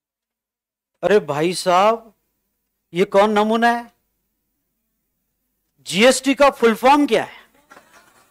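A man speaks into a close microphone, explaining with animation in short bursts.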